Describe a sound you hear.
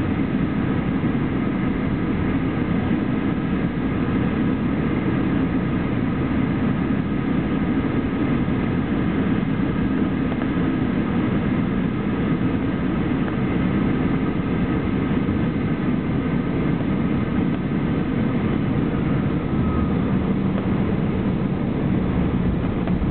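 A jet engine roars steadily, heard from inside the cabin.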